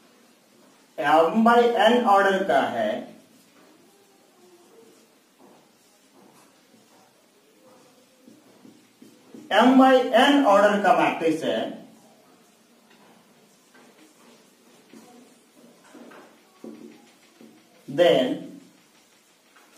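A young man speaks calmly in short bursts, as if teaching.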